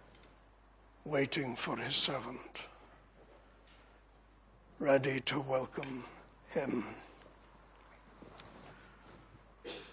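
An older man speaks with emphasis into a microphone, in bursts with pauses, in a slightly echoing room.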